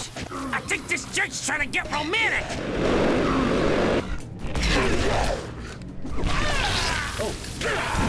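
Flames whoosh and crackle.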